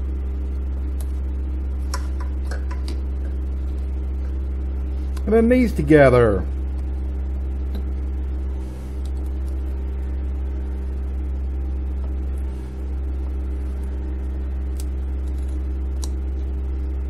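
Plastic connectors click and rattle.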